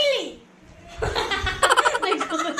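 Two young girls laugh loudly close by.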